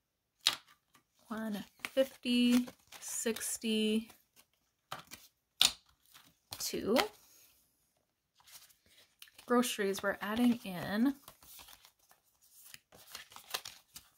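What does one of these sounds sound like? Paper notes rustle and crinkle as they are handled.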